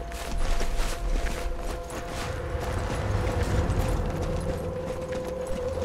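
Footsteps of several people walk over ground.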